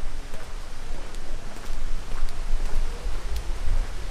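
Footsteps march on stone.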